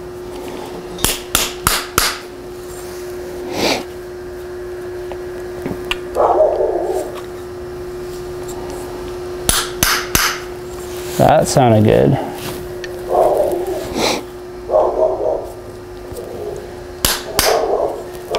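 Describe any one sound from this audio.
A metal tool clicks sharply against metal.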